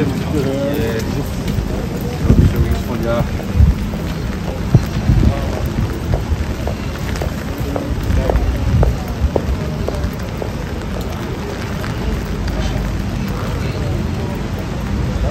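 Rain patters steadily on a wet street outdoors.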